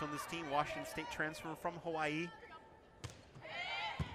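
A volleyball is struck hard once.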